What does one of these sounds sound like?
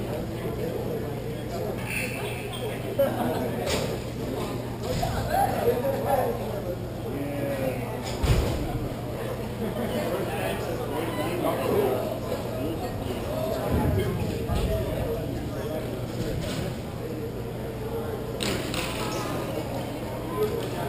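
Roller skate wheels roll and scrape on a hard floor.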